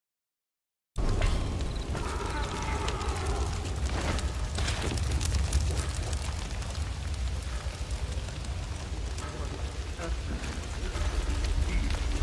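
Fire roars and crackles steadily.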